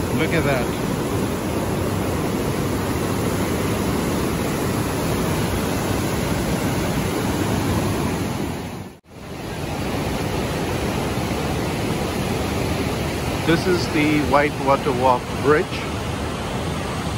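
Rapids rush and roar loudly outdoors.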